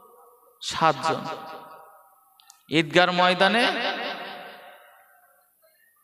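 A man chants in a long, drawn-out melodic voice through a microphone with echo.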